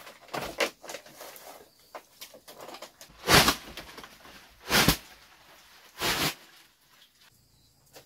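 Leafy greens rustle and crackle as they are handled.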